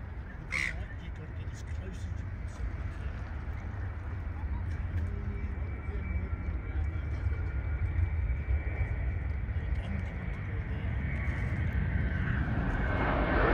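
A distant jet airliner hums faintly overhead.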